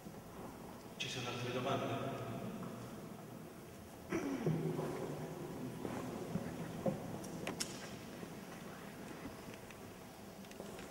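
A middle-aged man speaks through a microphone in a large echoing room.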